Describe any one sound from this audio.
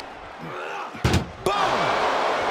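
A heavy body slams down with a loud thud.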